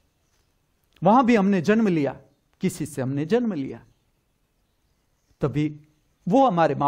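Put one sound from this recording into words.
An elderly man speaks calmly and close by, with pauses.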